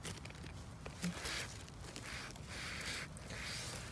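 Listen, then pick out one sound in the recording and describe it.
Mushrooms snap as a hand picks them.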